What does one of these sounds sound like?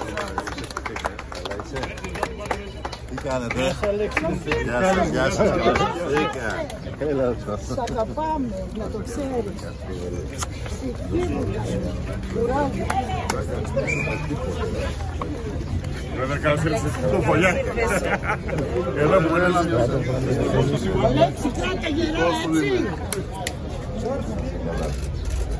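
A crowd of men and women chatters and talks over one another close by, outdoors.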